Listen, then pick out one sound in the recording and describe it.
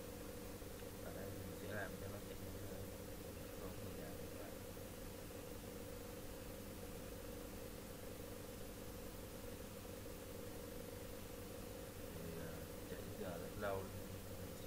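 A young man speaks briefly and quietly close to a microphone.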